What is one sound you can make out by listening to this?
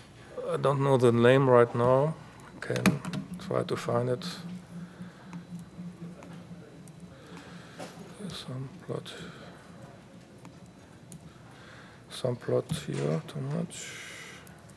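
A middle-aged man speaks calmly into a microphone in a large hall, with long pauses.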